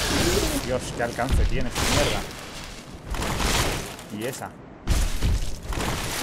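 A large creature roars and snarls.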